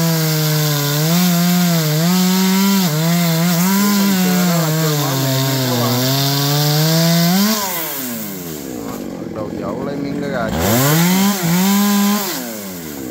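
A chainsaw bites into a wooden trunk.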